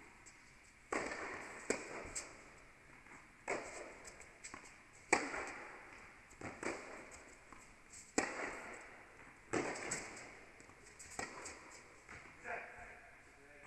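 Tennis shoes squeak on the court.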